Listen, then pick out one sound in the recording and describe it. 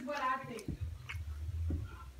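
A young woman bites into crunchy food.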